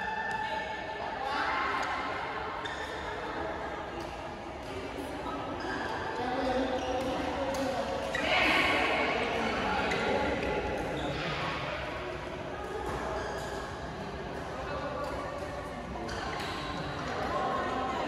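Many people's voices murmur and call out, echoing in a large hall.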